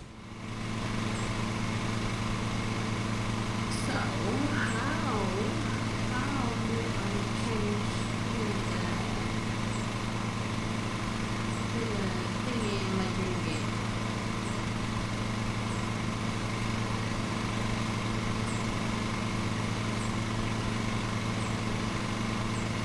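A ride-on lawn mower engine hums steadily.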